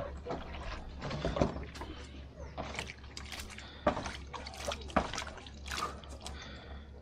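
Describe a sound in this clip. Water splashes as hands wash in a basin.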